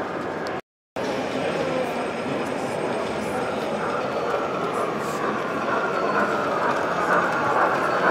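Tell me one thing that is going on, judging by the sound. A model steam locomotive rumbles along the track.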